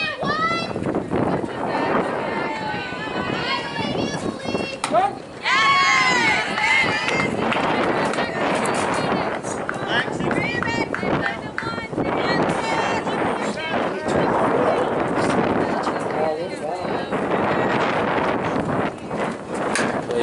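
Young women shout and cheer across an open field.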